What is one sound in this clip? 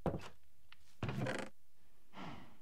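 A wooden chest lid opens with a creak.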